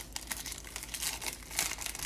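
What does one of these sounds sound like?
Cards rustle as they are slid out of a wrapper.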